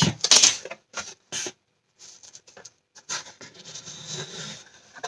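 Hands rub and press against a cardboard box.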